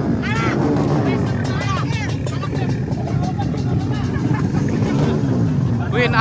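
A motorcycle engine idles and revs nearby.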